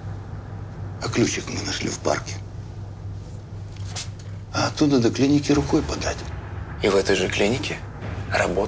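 A young man speaks softly, close by.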